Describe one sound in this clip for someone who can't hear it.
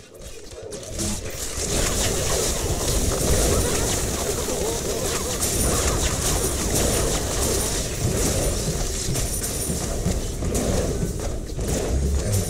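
Fiery blasts and explosions crackle and roar in a loud battle.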